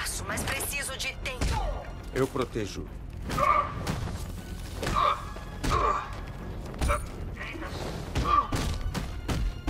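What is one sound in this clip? Heavy punches and kicks land with thuds in a fast brawl.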